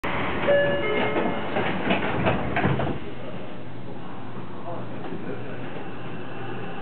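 A train hums steadily at rest.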